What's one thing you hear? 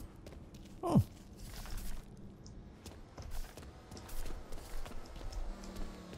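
Punches thud as men brawl and fall against furniture.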